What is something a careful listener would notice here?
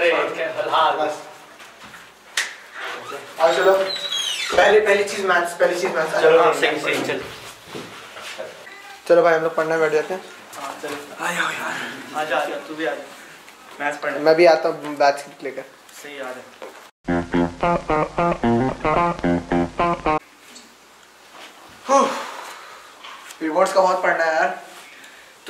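Young men talk with animation nearby.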